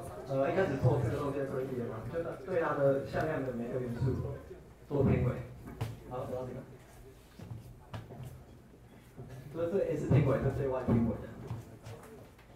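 A young man speaks into a microphone, explaining in a calm voice.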